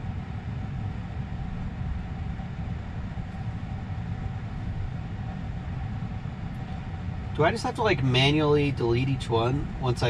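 A low steady hum fills a parked car's cabin.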